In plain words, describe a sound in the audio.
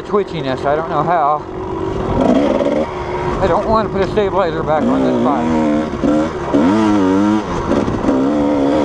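Tyres crunch over loose gravel.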